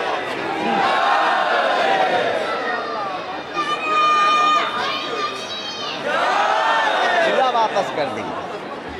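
A large crowd of young men chants and cheers loudly outdoors.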